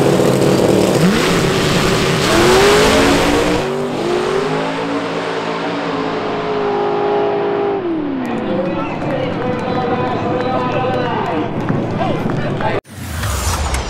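A race car engine roars and revs up as the car launches and speeds away.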